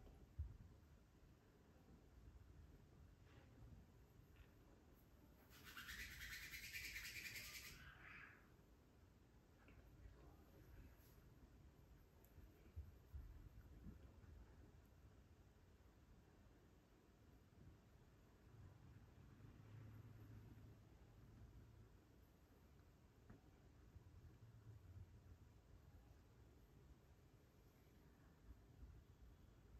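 Hands rub and stroke skin and hair softly.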